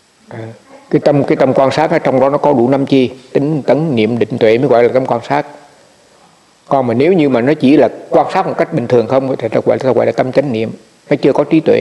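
An elderly man speaks calmly and with animation close to a microphone.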